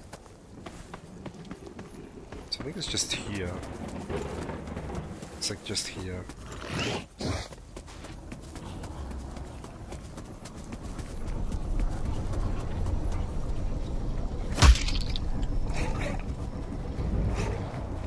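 Footsteps pad through grass.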